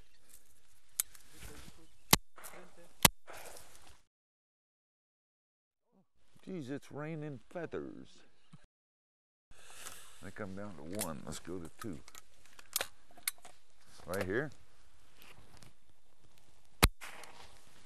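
Shotguns fire loud, sharp blasts several times outdoors.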